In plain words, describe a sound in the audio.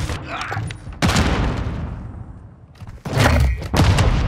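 Loud gunshots boom and echo in bursts.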